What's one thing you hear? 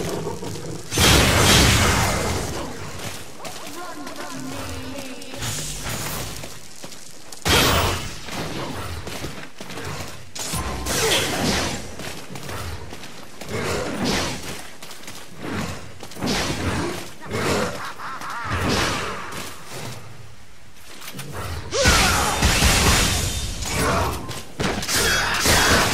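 Explosive blasts burst loudly.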